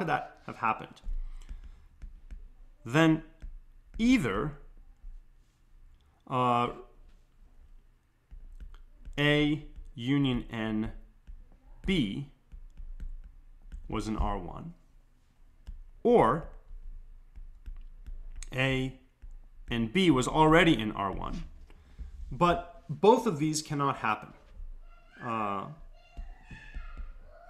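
A man speaks calmly into a close microphone, explaining at a measured pace.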